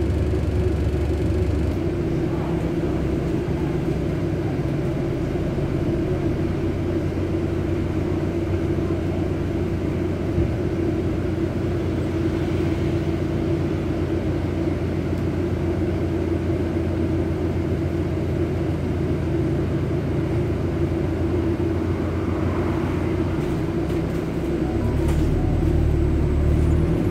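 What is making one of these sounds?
A double-decker bus engine drones under a passenger's seat while the bus drives along, heard from inside.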